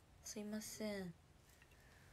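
A young woman speaks briefly, close to the microphone.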